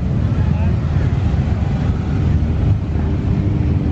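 A car drives slowly past.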